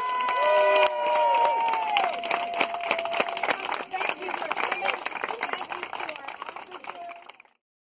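Many hands clap.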